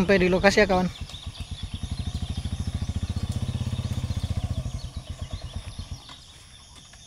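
A motorbike engine idles with a steady putter nearby.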